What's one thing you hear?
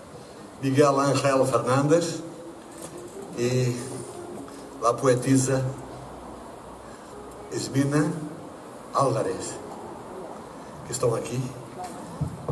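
A middle-aged man talks with animation into a microphone.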